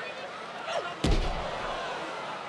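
A body slams heavily onto a wrestling ring mat with a loud thud.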